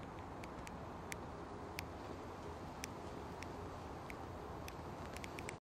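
A cigarette crackles softly as it burns up close.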